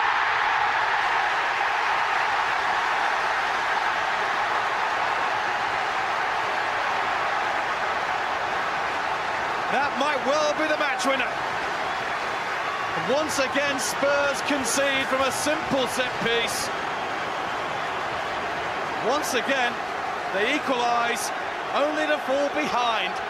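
A large crowd roars and cheers loudly, then settles to a steady murmur.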